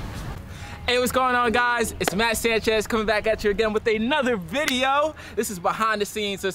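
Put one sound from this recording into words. A young man raps with energy.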